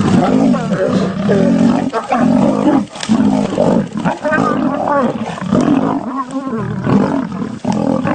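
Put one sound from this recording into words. Lions snarl and growl as they fight.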